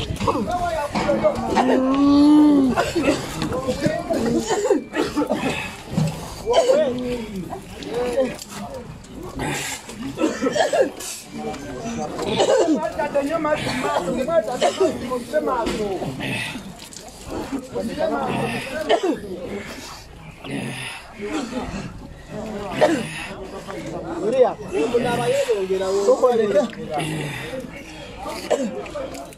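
A crowd of men and women talk and shout excitedly nearby.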